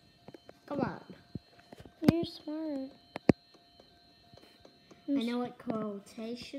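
A tablet game plays short electronic sounds.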